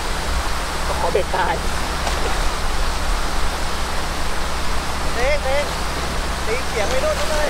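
A man talks excitedly nearby.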